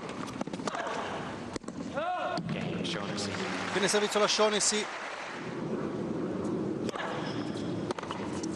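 A tennis ball is struck with a sharp pop of a racket.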